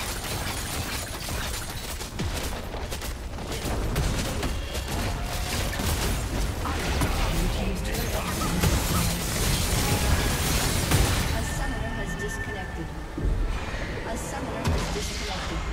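Game spells crash, whoosh and boom in a busy fight.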